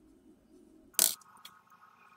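Bolt cutters snap through a small piece of metal with a sharp crack.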